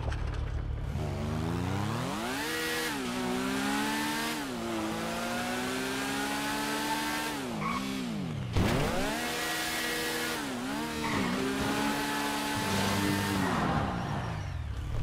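A motorbike engine revs up and down as the bike speeds along.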